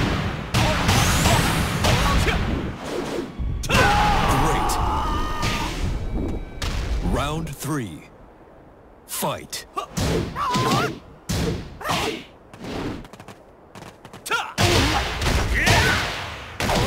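Fire bursts with a roaring whoosh.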